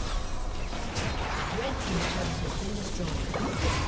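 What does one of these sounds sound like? A turret crumbles with a heavy crash in a video game.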